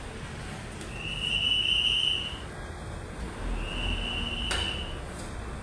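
A scooter's alarm beeps in long, high tones.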